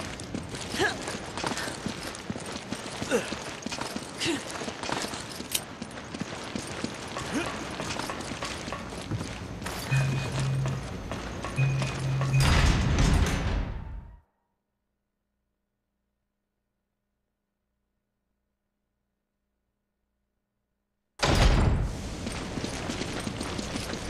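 Footsteps tread quickly over hard floors and metal stairs.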